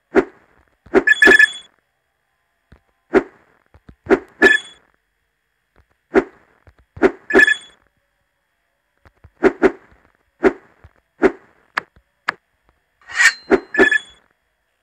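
Bright chimes ring as coins are collected.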